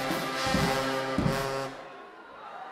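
A large brass band plays loudly and then stops.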